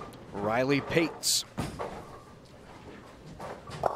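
A bowling ball rolls along a wooden lane with a low rumble.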